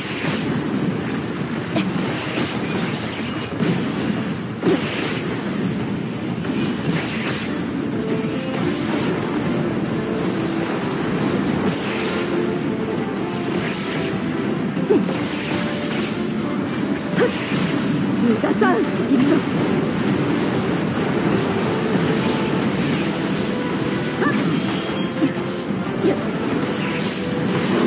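Air rushes past in swelling whooshes.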